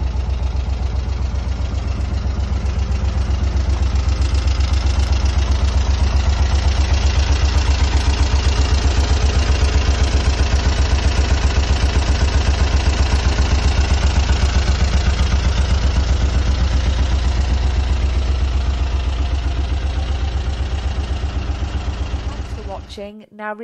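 An engine idles with a steady, rapid chugging.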